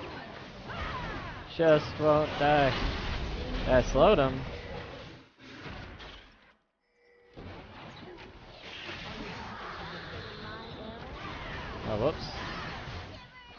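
Electronic fighting sound effects whoosh and crackle.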